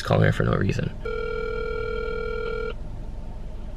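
A phone sounds a steady electronic tone through its loudspeaker.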